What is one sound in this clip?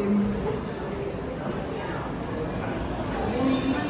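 Elevator doors slide open.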